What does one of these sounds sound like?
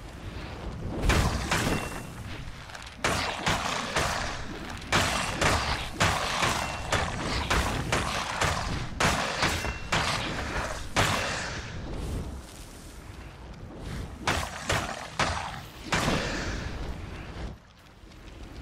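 A hammer smashes skeletons with heavy thuds and cracks.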